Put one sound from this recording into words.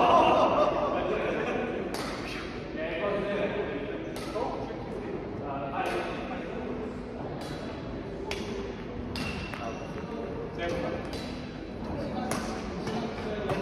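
Men talk in the background.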